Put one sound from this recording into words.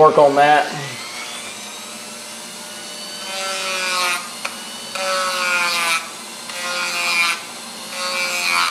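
A small power tool whirs steadily with a high whine that rises and falls.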